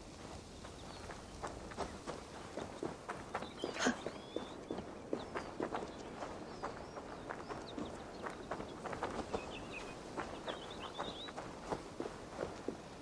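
Footsteps run over dry ground and gravel.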